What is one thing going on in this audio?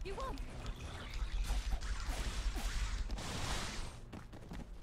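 Weapons clash and magic bursts loudly in a game battle.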